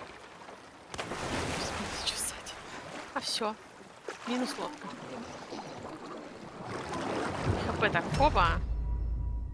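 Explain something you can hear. Water splashes around a swimmer.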